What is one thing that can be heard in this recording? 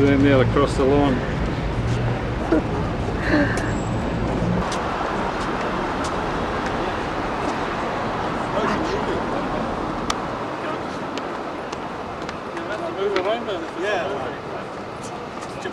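Street traffic hums steadily outdoors.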